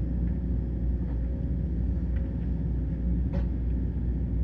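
An excavator bucket scrapes and knocks on soil and stones.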